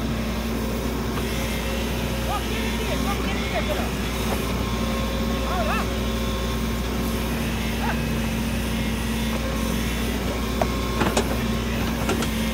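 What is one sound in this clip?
An excavator bucket scrapes and digs into soil.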